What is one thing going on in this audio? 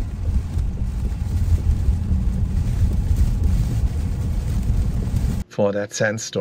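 Rain patters on a car windscreen.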